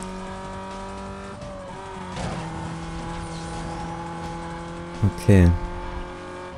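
A car engine roars at high speed, shifting gears.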